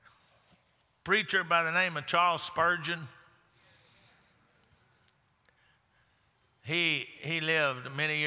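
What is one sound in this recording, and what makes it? A man preaches with animation through a microphone in a large hall.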